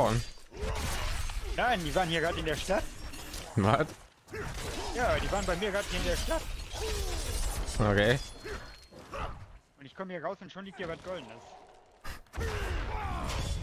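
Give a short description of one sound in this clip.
Blades clash and slash in a fast fight.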